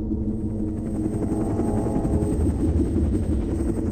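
A helicopter flies past with a steady droning whir.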